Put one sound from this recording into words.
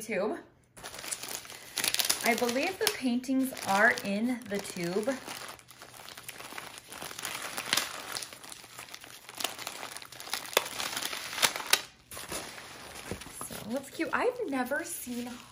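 Plastic bubble wrap crinkles and rustles as hands handle it.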